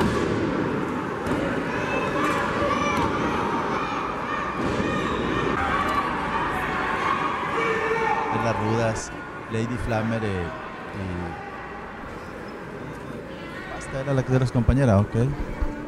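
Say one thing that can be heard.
Bodies slam onto a wrestling ring mat with loud thuds.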